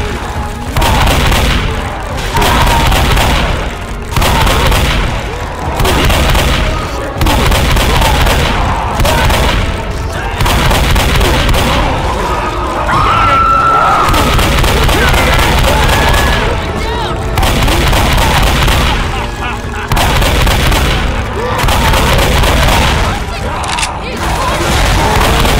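A shotgun fires repeatedly in loud blasts.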